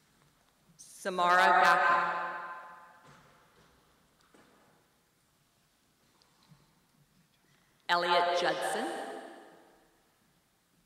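A woman reads out names through a microphone in a large echoing hall.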